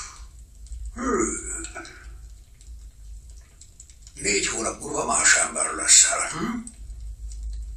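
An older man speaks in a low, rough voice close by.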